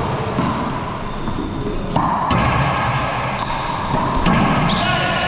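A ball smacks hard against the walls of an echoing court.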